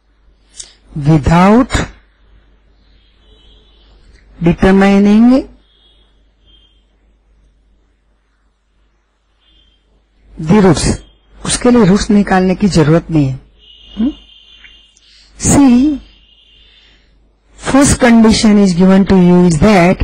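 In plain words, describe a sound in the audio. An elderly woman speaks slowly and calmly through a microphone, with pauses.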